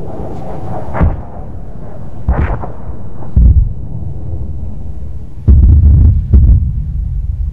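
Missiles burst and boom in the air.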